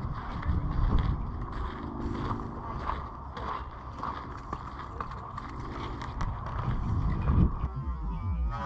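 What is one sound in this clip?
Footsteps crunch on a dry sandy trail.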